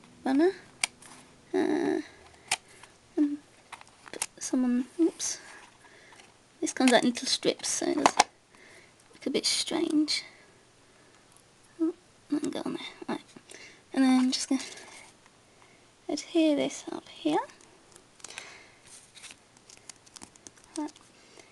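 Paper rustles softly under a hand.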